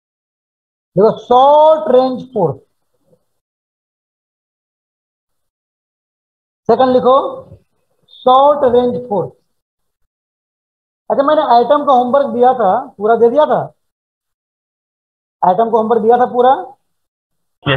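A man speaks calmly into a headset microphone, in short phrases with pauses.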